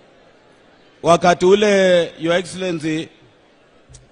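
A man speaks loudly and with emphasis into a microphone over a loudspeaker.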